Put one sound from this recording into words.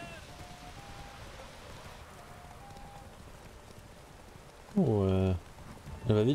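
Horse hooves thud at a gallop.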